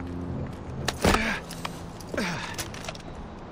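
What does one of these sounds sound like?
Someone lands heavily on hard ground with a thud.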